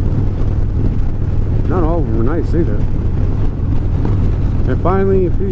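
A motorcycle engine rumbles steadily at cruising speed.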